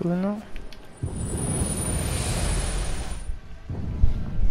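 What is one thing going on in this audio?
A shimmering magical hum swells and fades.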